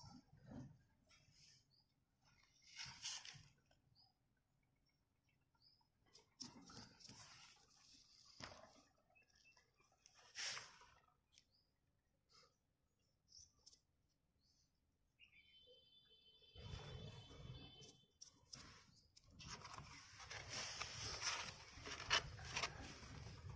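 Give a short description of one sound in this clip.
A metal trowel scrapes and slaps wet mortar in a bucket.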